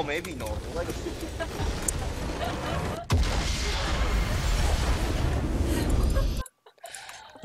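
A loud rumbling explosion crashes and roars, then cuts off.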